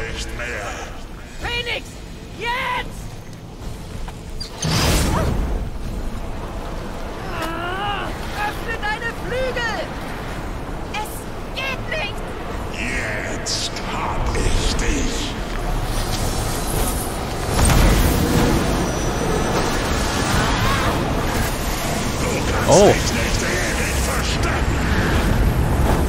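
Game characters speak with animation.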